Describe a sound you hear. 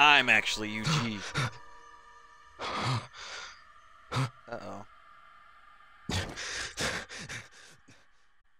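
A man speaks calmly and gravely, close by.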